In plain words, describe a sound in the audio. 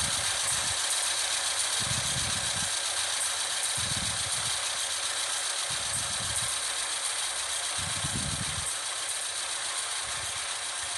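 A train rumbles along the tracks with a steady, rhythmic clunking.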